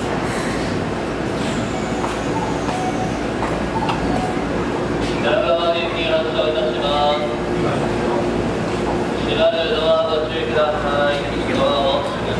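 An electric train hums steadily while idling.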